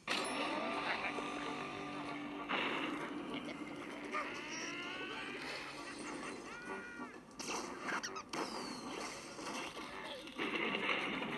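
Cheerful video game music plays from a small tablet speaker.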